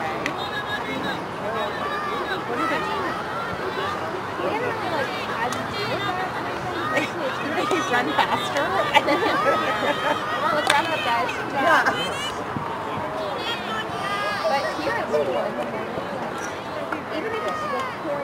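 A hockey stick strikes a ball with a sharp clack.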